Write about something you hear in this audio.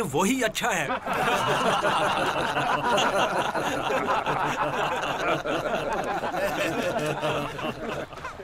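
A group of men laugh loudly together.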